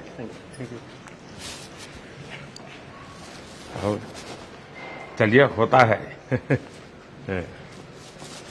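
An elderly man speaks calmly and quietly nearby.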